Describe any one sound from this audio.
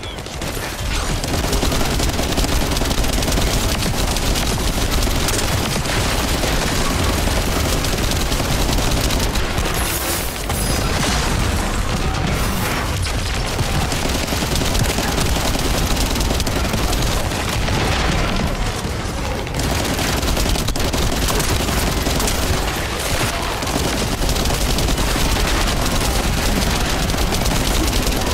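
Gunfire and explosions crackle and boom in rapid bursts.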